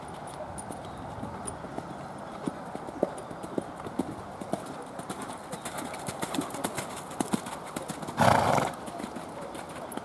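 A horse canters with rhythmic thudding hoofbeats on soft, muddy ground.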